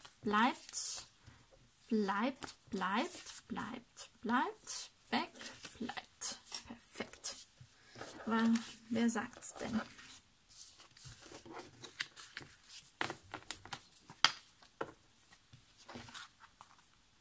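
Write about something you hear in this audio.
Paper cards rustle and slide against each other as they are handled.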